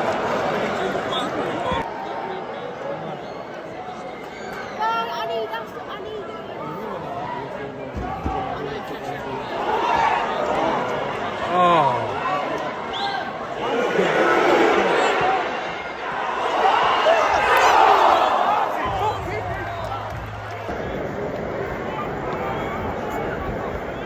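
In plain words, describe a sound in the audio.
A large crowd murmurs and chants in an open-air stadium.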